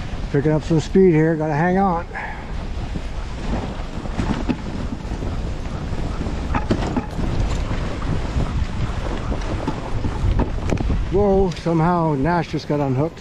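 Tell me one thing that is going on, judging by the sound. Sled runners scrape and hiss steadily over snow.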